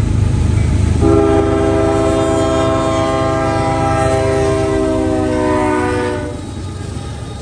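A locomotive horn blares long and steady, then falls in pitch as it passes.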